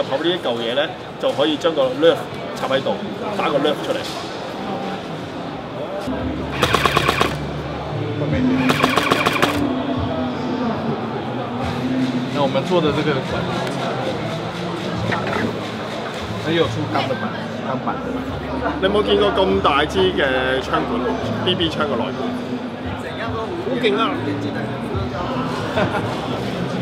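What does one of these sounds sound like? A young man talks to the listener with animation, close by.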